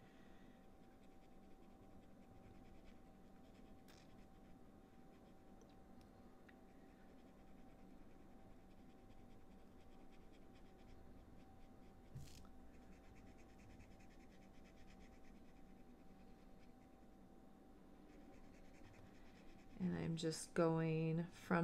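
A marker tip scratches softly on paper.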